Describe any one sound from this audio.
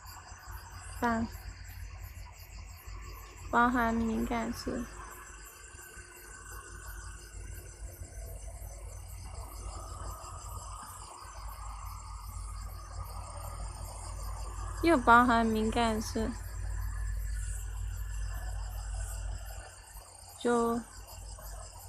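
A young woman speaks in short bursts close to the microphone.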